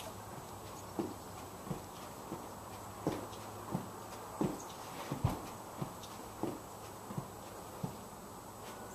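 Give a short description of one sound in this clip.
Feet thump softly on a rug in a quick rhythm.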